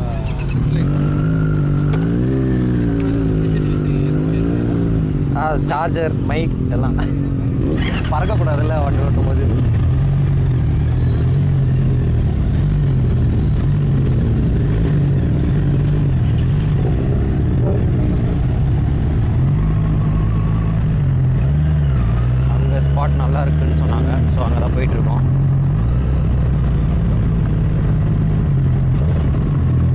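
A motorcycle engine idles and revs, changing pitch as it rides.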